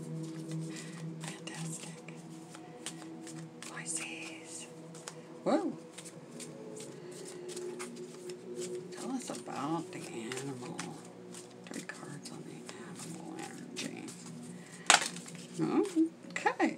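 Stiff cards riffle and slap softly as they are shuffled by hand.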